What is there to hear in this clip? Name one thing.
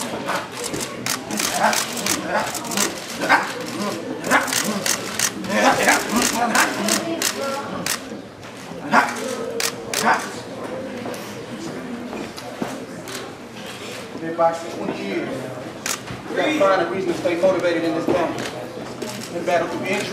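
Men chatter nearby in a room.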